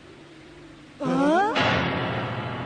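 A young man gasps in surprise.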